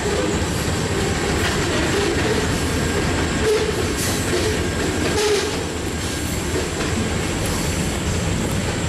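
Freight cars rumble and clatter past on the rails.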